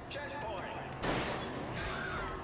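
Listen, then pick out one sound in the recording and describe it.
A car crashes with a loud metallic bang.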